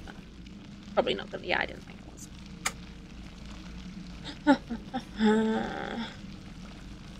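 A woman talks casually into a nearby microphone.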